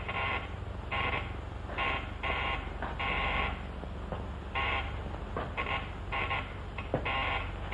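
A man's footsteps shuffle slowly across a hard floor.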